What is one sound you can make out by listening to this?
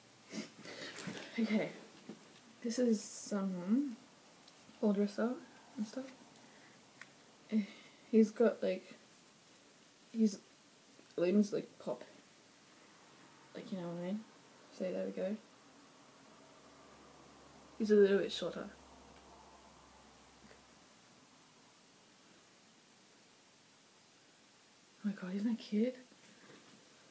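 A young woman talks calmly and close by, with pauses.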